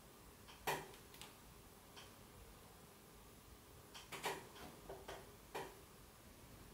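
A brass flywheel clicks and taps against a metal shaft as it is fitted by hand.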